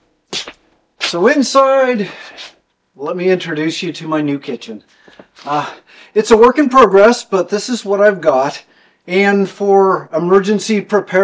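An older man talks with animation, close by.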